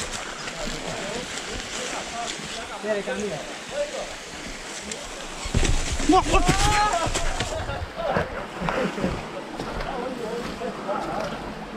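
A small stream trickles and splashes over rocks.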